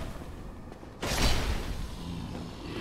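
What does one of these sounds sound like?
A sword hits with a heavy thud.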